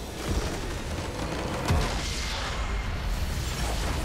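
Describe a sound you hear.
A large crystal structure shatters with a deep booming explosion.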